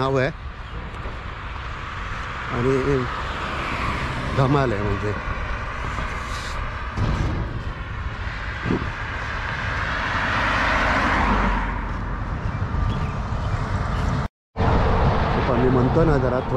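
Wind buffets the microphone with a low rumble.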